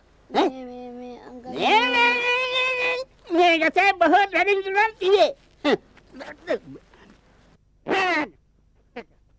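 An elderly man speaks loudly with animation.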